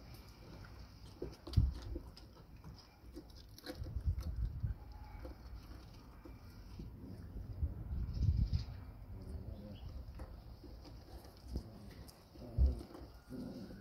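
Puppies chew and slurp food up close.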